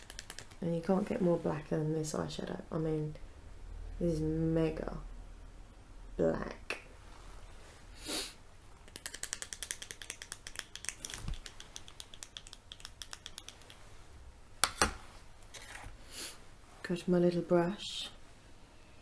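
A woman talks softly and calmly, close by.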